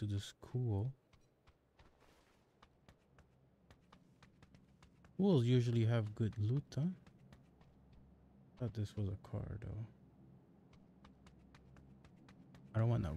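Footsteps tap quickly and evenly.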